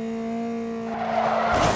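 Tyres screech in a skid.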